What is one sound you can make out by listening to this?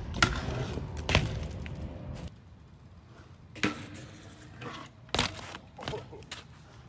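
Bicycle tyres roll and scrape over pavement.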